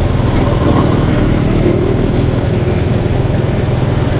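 A truck rumbles by on the left.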